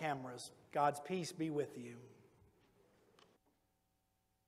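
An elderly man speaks into a microphone, heard through a loudspeaker in an echoing hall.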